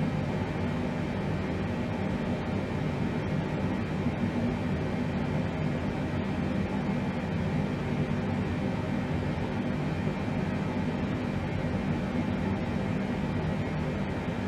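A steady, low aircraft engine drone hums throughout.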